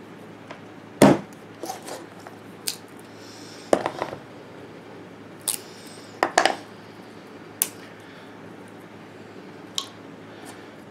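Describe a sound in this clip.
Wooden sticks clatter and tap against a board.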